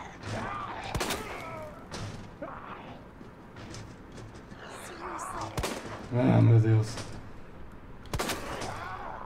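A handgun fires sharp shots.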